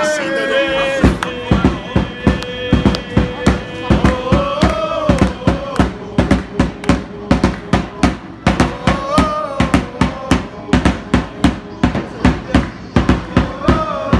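A football crowd claps in rhythm.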